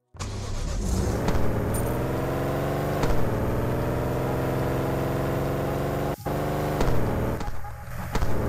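A car engine drones and revs up, rising in pitch again and again.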